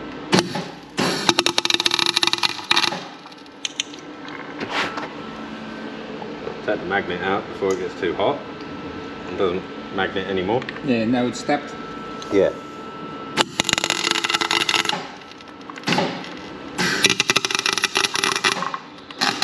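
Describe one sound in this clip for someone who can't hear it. A welder crackles and sizzles in bursts.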